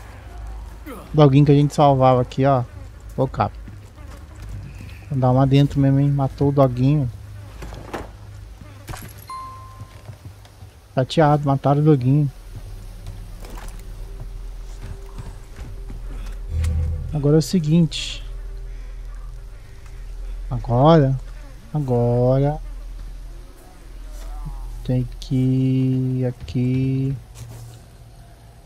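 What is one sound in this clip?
Footsteps crunch slowly over dry leaves and dirt.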